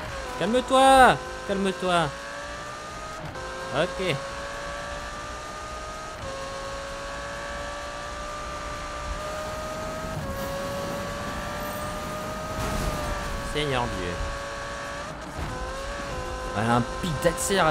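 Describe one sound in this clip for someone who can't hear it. A sports car engine roars steadily at high speed, rising in pitch between gear changes.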